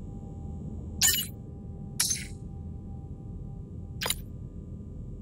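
Short electronic blips sound as messages are sent and received.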